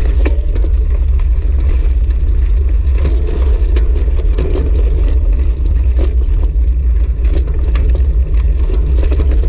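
Bicycle tyres crunch and rattle over gravel.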